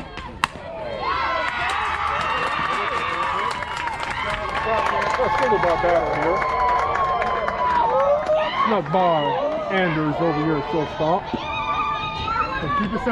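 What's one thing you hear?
Young girls shout and cheer outdoors.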